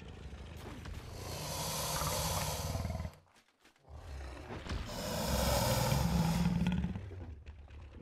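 A large beast roars loudly and deeply.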